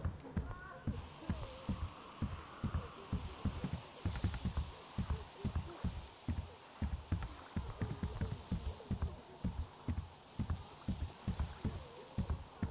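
Wind and rain hiss steadily outdoors.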